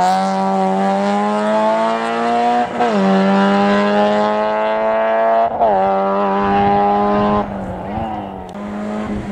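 A rally car engine revs hard and roars away, shifting through the gears.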